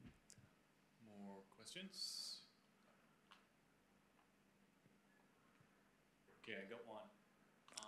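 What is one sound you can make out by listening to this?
A young man speaks calmly through a microphone, in short phrases with pauses.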